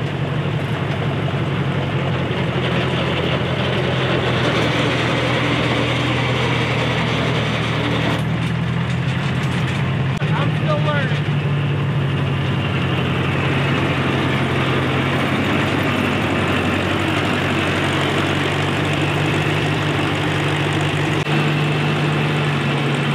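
Tires crunch over gravel.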